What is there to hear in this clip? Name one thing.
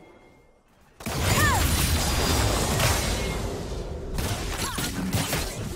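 Spell blasts and weapon hits crash and whoosh in a busy fight.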